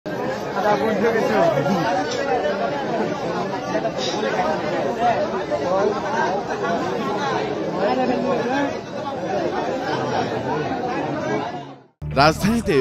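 A large crowd of men shouts and talks over one another outdoors.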